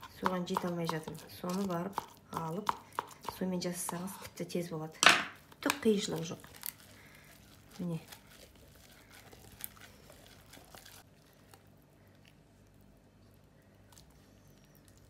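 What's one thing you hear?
Meat filling squelches softly as it is pushed into a casing.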